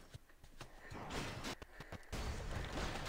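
Blows and blasts crash during a fight.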